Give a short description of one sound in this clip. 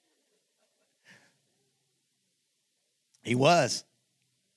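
A middle-aged man speaks with animation into a microphone in a large echoing hall.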